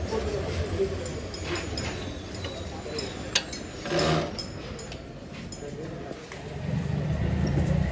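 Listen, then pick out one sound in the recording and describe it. Metal parts click and clatter as a mirror is fitted by hand.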